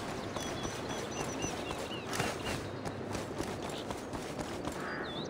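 Footsteps thud steadily on stone and wood.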